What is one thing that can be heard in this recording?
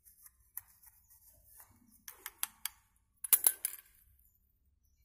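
Stiff leaves rustle and crackle as a plant is pulled from the soil.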